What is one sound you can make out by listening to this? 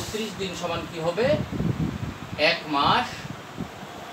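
A man speaks calmly, close by, as if explaining.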